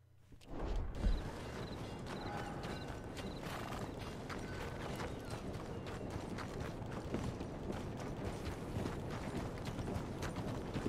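Footsteps thud on the ground at a run.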